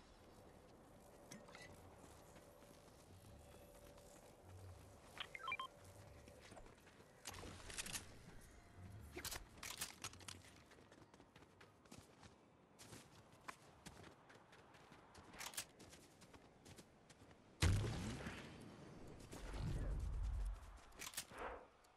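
Footsteps of a game character patter quickly over grass and dirt.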